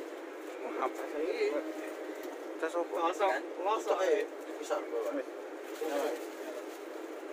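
A young man talks nearby.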